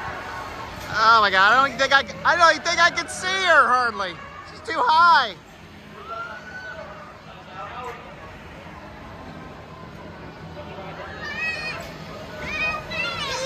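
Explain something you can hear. Children shriek and squeal excitedly nearby.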